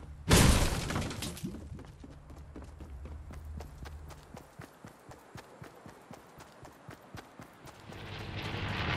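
Footsteps of a running figure in a video game patter in quick succession.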